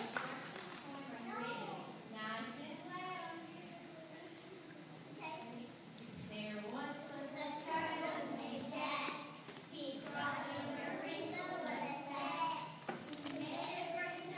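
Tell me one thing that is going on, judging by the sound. A group of young children sings together in a large room.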